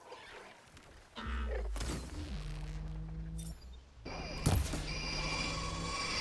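Shots and blasts crack during a fight with a machine.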